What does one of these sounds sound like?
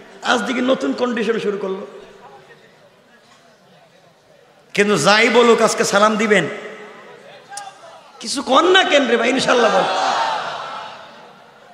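A young man preaches with passion into a microphone, his voice ringing out through loudspeakers in bursts.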